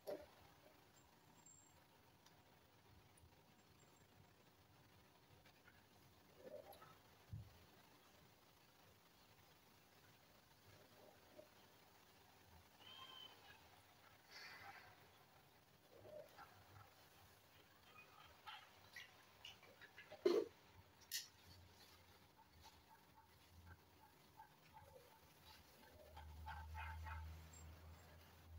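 Hands softly rub and knead skin.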